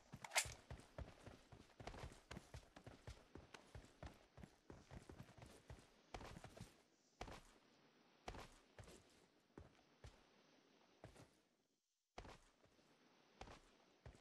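Boots thump and scrape in quick, uneven footsteps.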